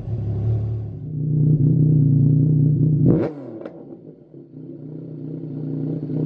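A motorcycle engine idles with a deeper, burbling exhaust note.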